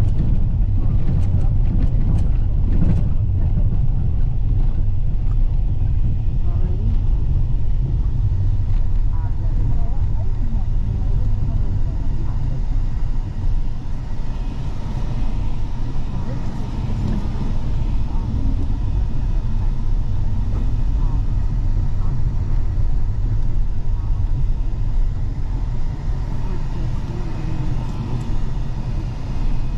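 A vehicle engine rumbles steadily from inside a moving car.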